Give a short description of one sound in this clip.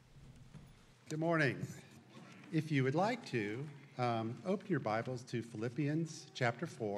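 A second man speaks calmly through a microphone.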